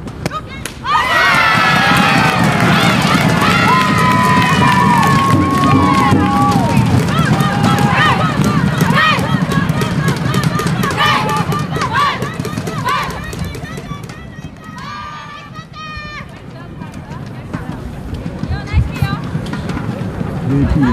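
A crowd in the stands cheers and chants loudly.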